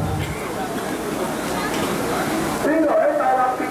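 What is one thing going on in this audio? A young woman speaks through a microphone over loudspeakers.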